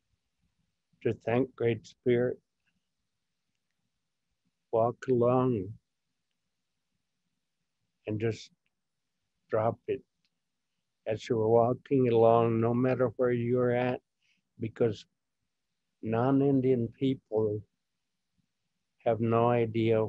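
An elderly man speaks slowly with pauses, heard through an online call.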